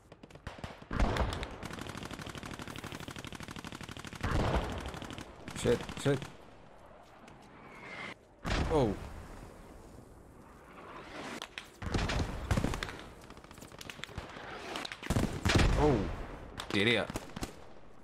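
Gunshots and explosions boom in the distance, outdoors.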